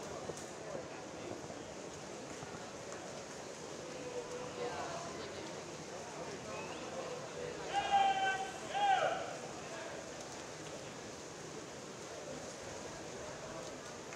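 Swimmers splash through the water in a large echoing hall.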